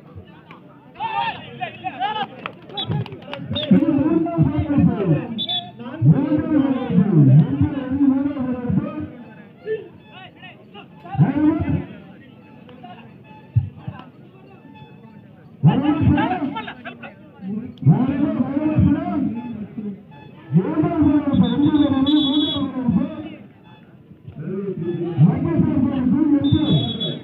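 A young man chants rapidly and loudly outdoors.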